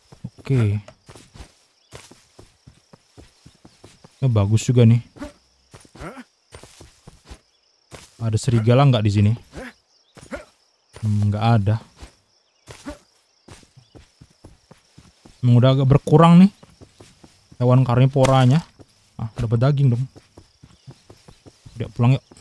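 Footsteps swish through grass at a steady walking pace.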